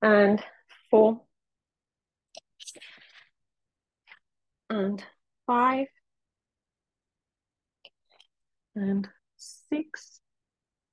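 A woman speaks calmly in short phrases, heard through a microphone.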